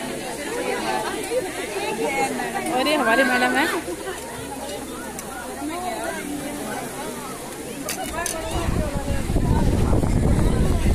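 A crowd of women chatter and talk loudly close by.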